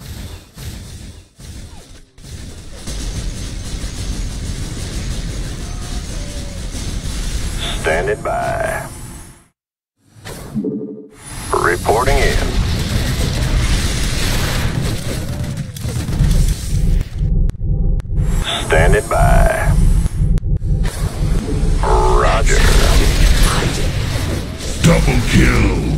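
Guns fire in short bursts during a battle.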